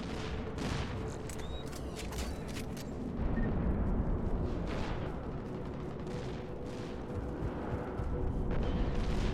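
Heavy armored footsteps thud on stone.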